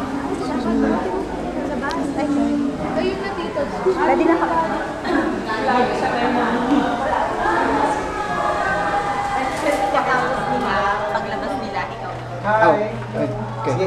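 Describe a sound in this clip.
Several women chatter and talk over each other close by.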